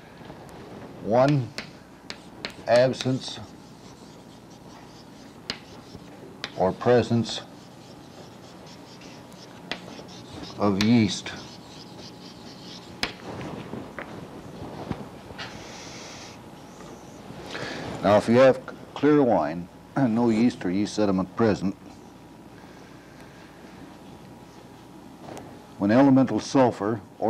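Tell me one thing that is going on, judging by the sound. An elderly man speaks slowly and calmly in a large room, with pauses.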